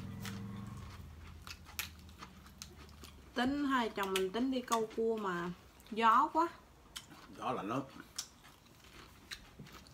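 Crisp vegetable leaves crunch and snap between fingers.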